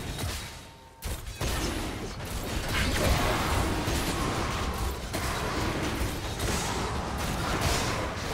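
Magic blasts and impacts crackle and boom in a busy game battle.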